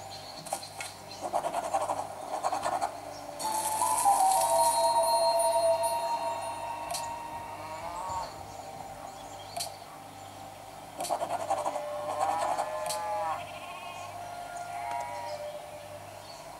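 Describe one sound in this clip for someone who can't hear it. Game sound effects chime and whoosh from a small tablet speaker.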